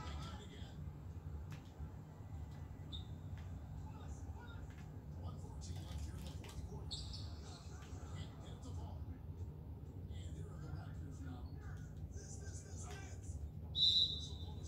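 Sneakers squeak on a basketball court, heard through a television speaker.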